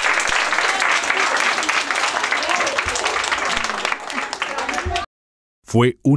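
A crowd of young children claps and cheers.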